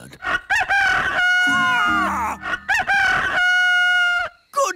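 A rooster crows loudly.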